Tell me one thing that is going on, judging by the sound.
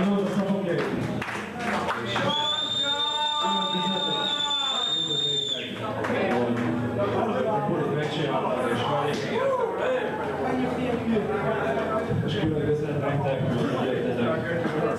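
An electric guitar plays loudly through an amplifier.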